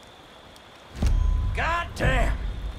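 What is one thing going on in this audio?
A man speaks with relief, close by.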